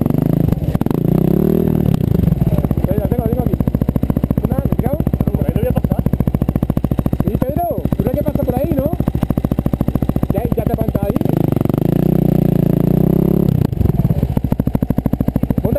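A dirt bike engine idles close by.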